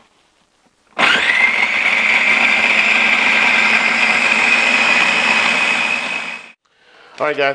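A food processor whirs loudly as it blends.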